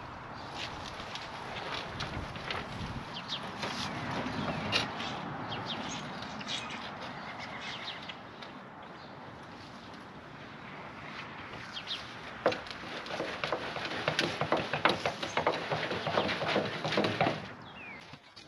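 A woman tips soil out of a wheelbarrow with thuds and scrapes.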